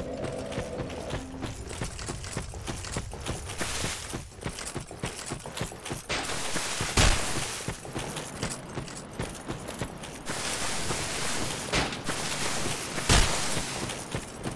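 Footsteps crunch over grass and earth.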